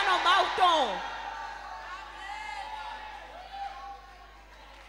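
A crowd sings and cheers in the distance.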